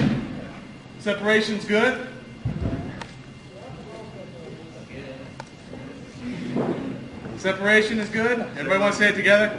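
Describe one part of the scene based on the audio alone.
A man talks with animation in a large echoing hall.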